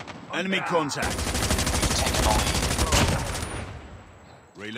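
A machine gun fires in long rapid bursts.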